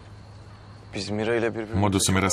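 A young man speaks quietly, close by.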